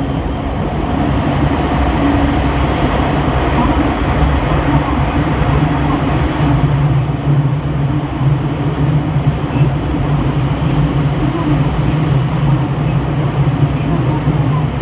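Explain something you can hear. An electric commuter train roars louder through a tunnel.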